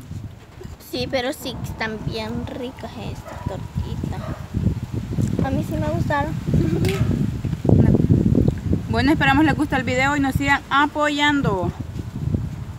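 A young girl talks in a high, lively voice nearby.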